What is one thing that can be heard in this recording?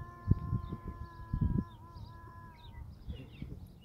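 A rubber toy squeaks in a long, wavering note.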